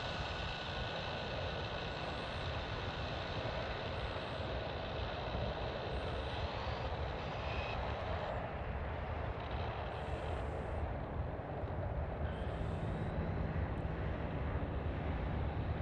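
Wind rumbles and buffets against the microphone.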